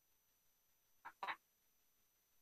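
A woman says a brief word over an online call.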